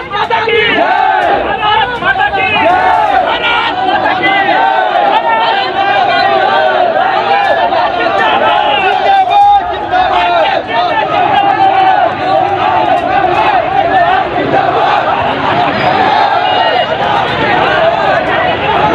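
A crowd of young men chants and shouts loudly outdoors.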